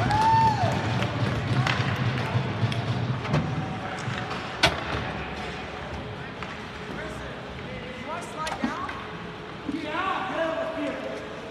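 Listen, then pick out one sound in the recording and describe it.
Young players shout across an echoing rink.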